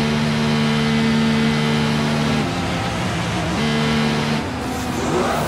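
A racing car engine hums steadily at a low speed.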